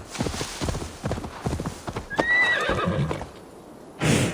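A horse's hooves pound on soft ground.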